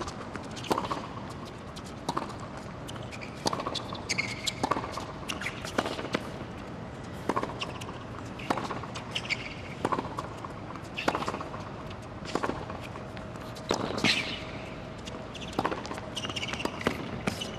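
Tennis balls are struck hard with rackets in a long rally.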